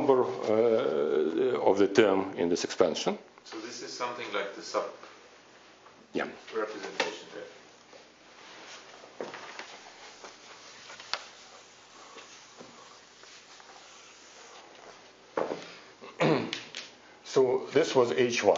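A middle-aged man lectures through a microphone.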